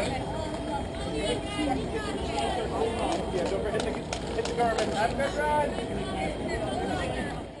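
A crowd of adult men and women chatters and cheers outdoors.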